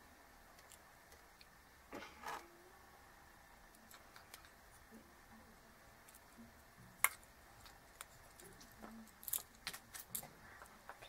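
A circuit board clicks and taps as it is handled on a wooden table.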